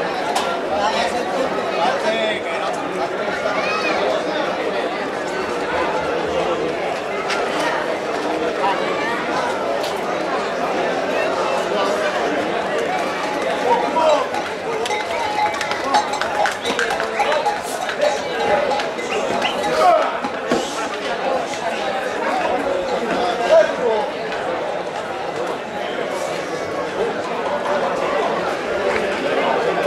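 A crowd of onlookers chatters and shouts outdoors.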